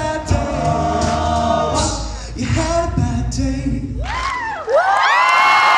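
Young men sing together in close harmony through microphones.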